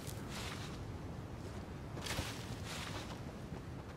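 Leaves rustle as someone pushes through a bush.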